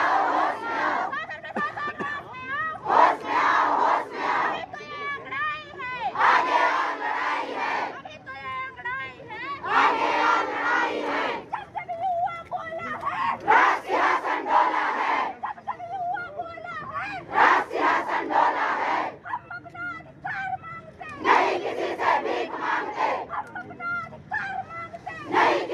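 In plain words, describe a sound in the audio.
A crowd of women chants slogans loudly in unison outdoors.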